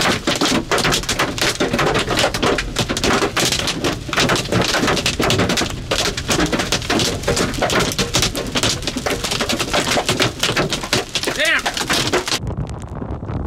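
A windshield wiper thumps and squeaks across glass.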